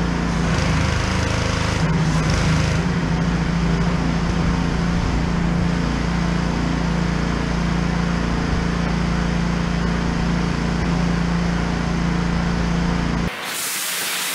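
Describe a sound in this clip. A pressure washer motor hums steadily.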